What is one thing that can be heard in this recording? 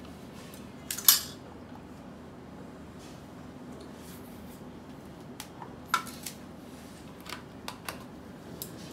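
A metal dish clinks against the floor.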